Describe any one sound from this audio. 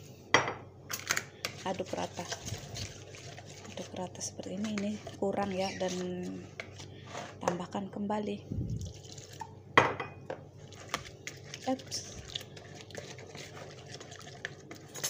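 A whisk clinks and scrapes against a bowl while stirring a thick batter.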